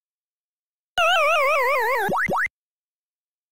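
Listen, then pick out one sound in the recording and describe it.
A game's falling tune plays as the player character dies.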